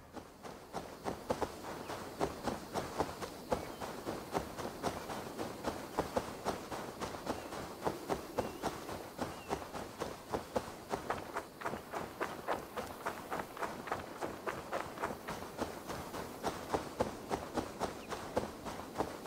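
Quick footsteps swish through tall grass.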